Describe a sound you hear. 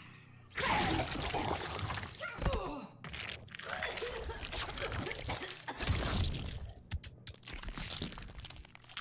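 A young man reacts with animation, heard close through a microphone.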